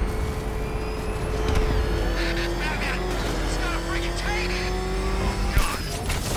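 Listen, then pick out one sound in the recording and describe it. A heavy engine roars steadily as a vehicle speeds along.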